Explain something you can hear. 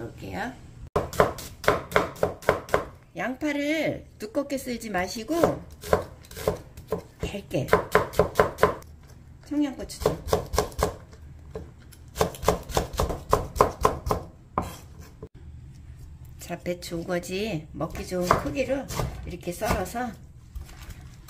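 A knife chops quickly against a wooden cutting board.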